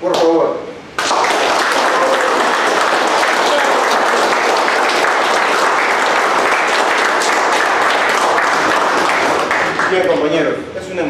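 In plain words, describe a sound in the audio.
A group of men clap their hands in steady applause.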